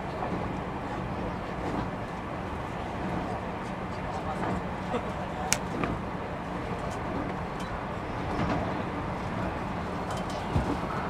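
A train rumbles steadily nearby.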